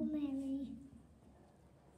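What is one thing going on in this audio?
A young boy speaks into a microphone.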